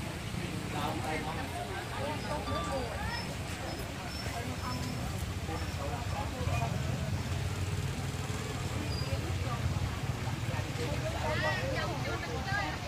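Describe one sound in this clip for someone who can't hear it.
Skewered food sizzles softly on a charcoal grill.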